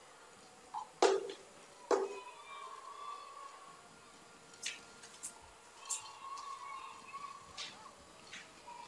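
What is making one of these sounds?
Shuttlecocks are struck with rackets in a rally, each hit a sharp pop.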